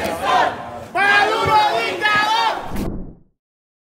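A man shouts angrily up close.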